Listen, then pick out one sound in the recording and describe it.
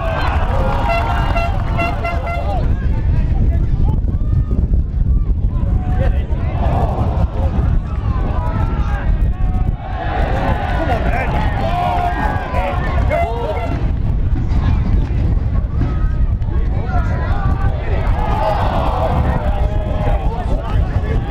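A crowd of football spectators shouts and calls outdoors.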